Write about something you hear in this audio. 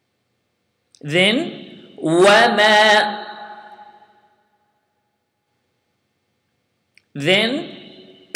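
A young man speaks with animation into a close microphone, in short phrases with pauses.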